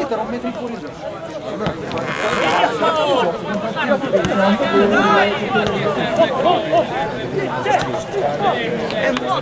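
A crowd of spectators chatters and shouts nearby.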